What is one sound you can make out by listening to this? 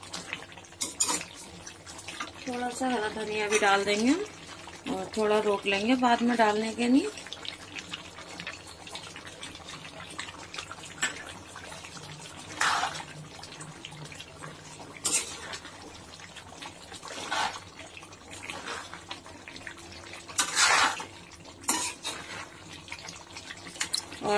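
A metal spoon scrapes and stirs through thick curry in a metal wok.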